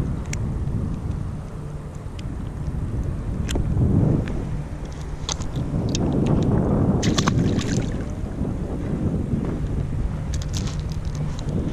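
Small waves lap against the hull of a kayak.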